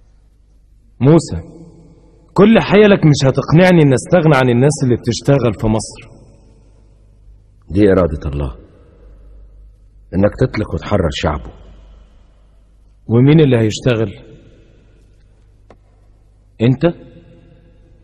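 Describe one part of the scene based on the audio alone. A man speaks forcefully in a commanding voice.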